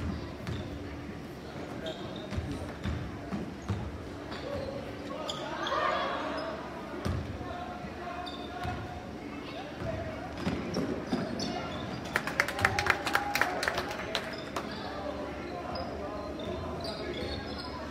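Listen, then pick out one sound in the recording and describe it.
A crowd murmurs and cheers in the stands.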